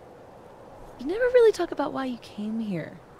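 A young woman speaks quietly and gently.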